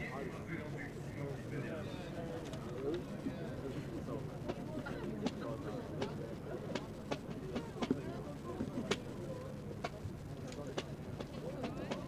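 A crowd of spectators murmurs and chatters outdoors.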